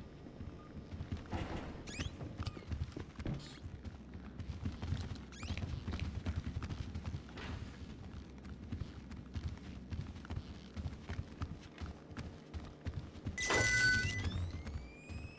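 Footsteps thud softly and steadily on a carpeted floor.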